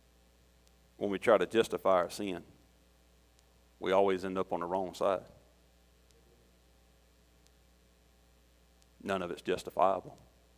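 A middle-aged man speaks slowly through a microphone in a large room, with long pauses.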